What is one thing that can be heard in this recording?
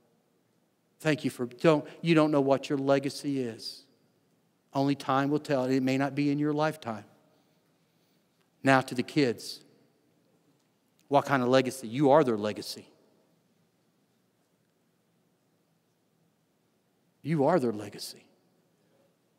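A middle-aged man speaks calmly through a microphone, in bursts with pauses.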